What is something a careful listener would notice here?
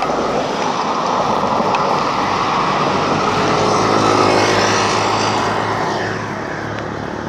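Traffic rumbles and hisses along a nearby street.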